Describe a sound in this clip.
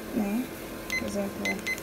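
A digital timer beeps several times in short, high chirps.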